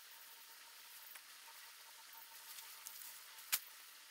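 A rake scrapes across the ground.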